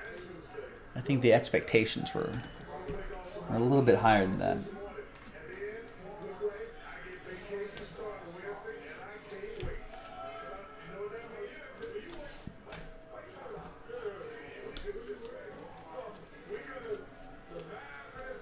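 Trading cards slide and rustle as they are shuffled in hand.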